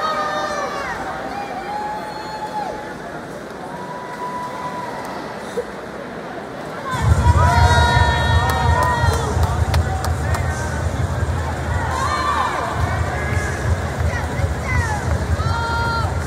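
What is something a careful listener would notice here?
Swimmers splash steadily through the water.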